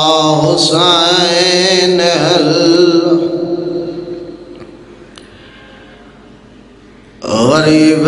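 A man chants in a long, drawn-out melodic voice through a microphone, with echo trailing off.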